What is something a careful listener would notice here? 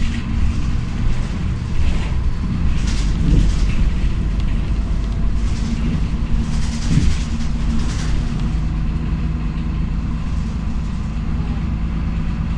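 A bus engine drones steadily as the bus drives.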